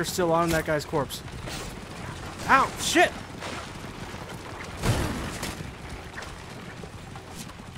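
Chariot wheels rumble over a dirt track.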